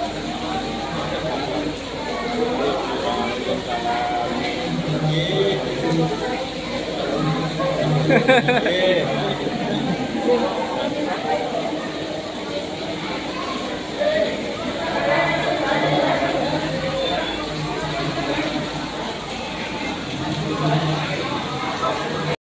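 Several people chatter in a room.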